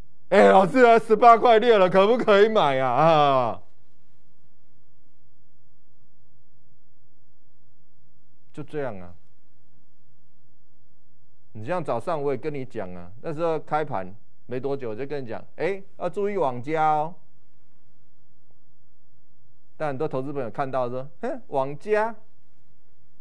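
A man speaks calmly into a microphone, pausing between phrases.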